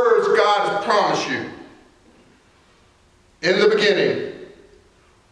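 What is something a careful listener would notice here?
A middle-aged man preaches with animation into a microphone.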